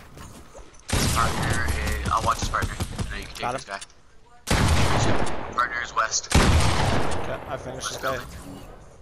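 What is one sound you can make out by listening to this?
Shotgun blasts boom in quick succession.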